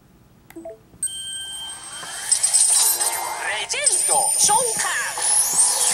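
A video game plays a loud, bright shimmering magical sound effect that swells and rings on.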